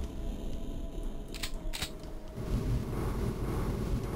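A weapon clicks as it is switched.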